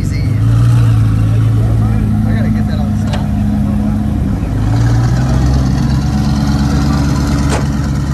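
A loud sports car engine idles with a deep, rough rumble and revs up twice.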